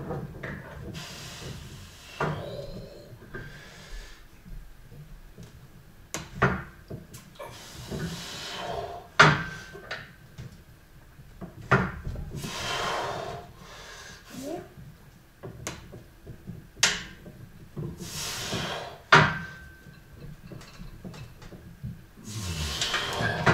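A man breathes hard and loudly with effort.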